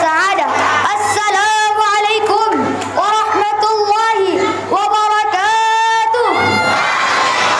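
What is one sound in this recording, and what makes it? A young boy sings a melodic chant loudly through a microphone in an echoing hall.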